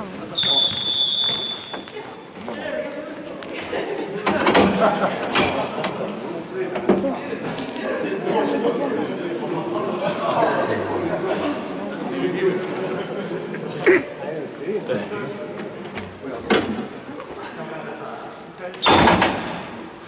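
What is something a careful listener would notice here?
Sticks clack and knock on a hard floor in a large echoing hall.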